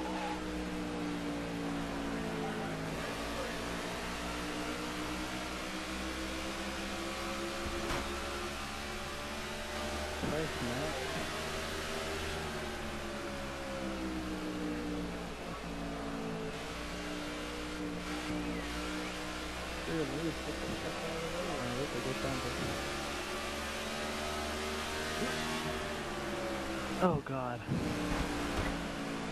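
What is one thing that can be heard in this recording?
A race car engine roars steadily at high speed, its pitch rising and falling with the throttle.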